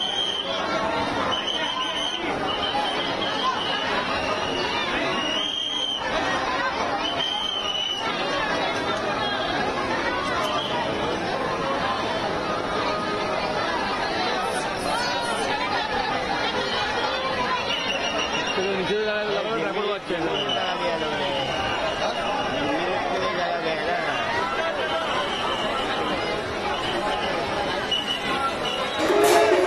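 A large crowd chatters and calls out all around.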